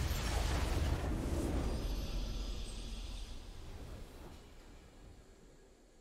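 A triumphant game fanfare swells and fades.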